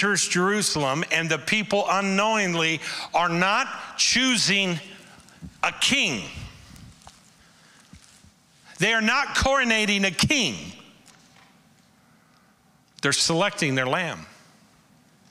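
A man speaks with animation through a microphone, in a large echoing hall.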